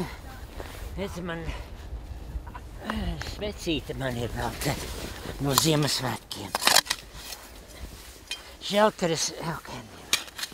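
An elderly man speaks calmly nearby.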